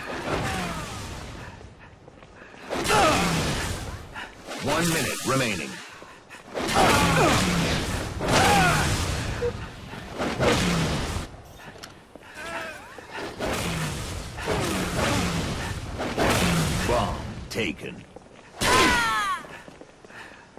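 A sword slashes with a sharp electric whoosh.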